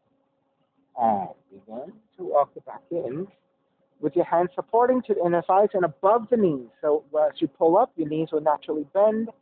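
A man speaks calmly and clearly, close to the microphone.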